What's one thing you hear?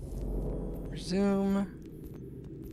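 A menu chime rings out with a short tone.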